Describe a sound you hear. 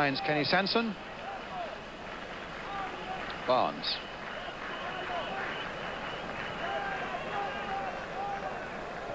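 A large stadium crowd murmurs and chants in the open air.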